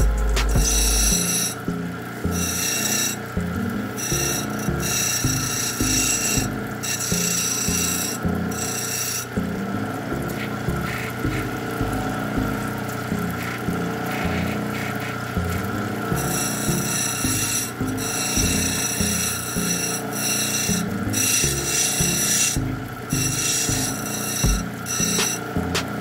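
A grinding wheel motor hums steadily.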